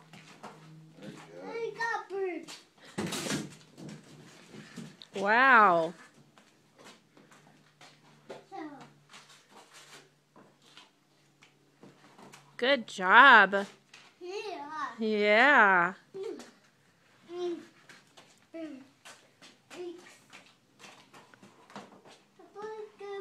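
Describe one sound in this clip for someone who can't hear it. A toddler babbles and squeals nearby.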